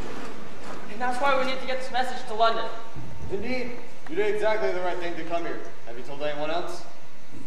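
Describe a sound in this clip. A young man speaks loudly and clearly in a large echoing hall.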